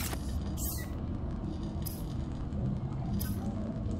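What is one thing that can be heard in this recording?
Electric sparks crackle and fizz nearby.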